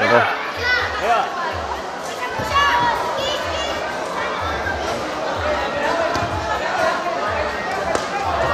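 A large crowd chatters and shouts outdoors.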